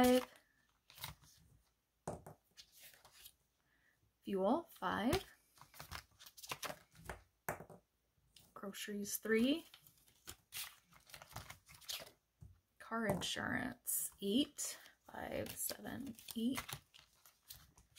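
Stiff plastic pages rustle and flap as they are turned by hand.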